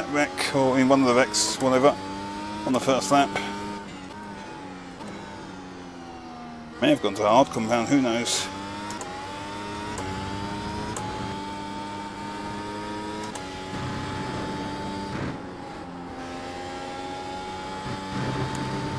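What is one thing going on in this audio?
A racing car engine whines steadily, rising and dropping in pitch as the gears change.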